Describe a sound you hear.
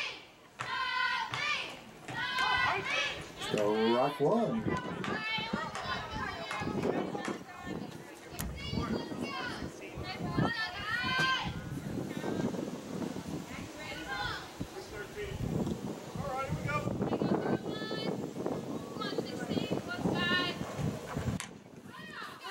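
Spectators talk and call out outdoors.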